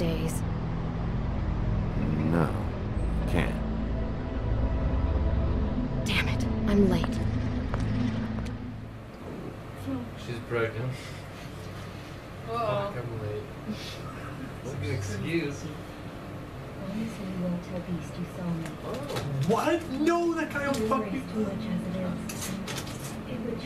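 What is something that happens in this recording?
A group of young people talk quietly nearby.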